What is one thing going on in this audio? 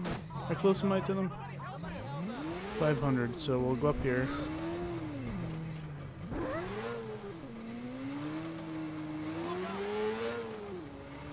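A motorcycle engine revs up and down as the bike speeds along.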